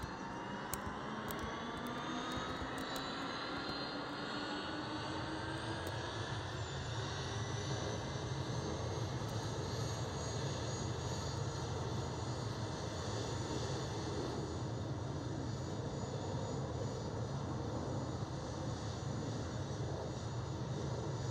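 Jet engines spool up with a rising whine and a deep roar.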